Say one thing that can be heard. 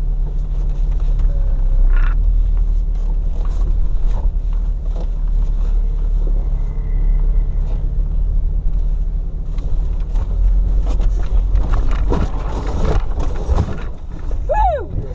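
A snowmobile engine rumbles steadily up close.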